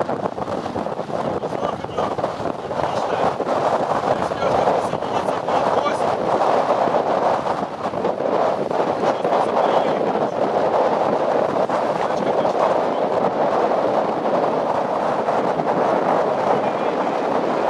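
Waves rush and splash against a sailing boat's hull.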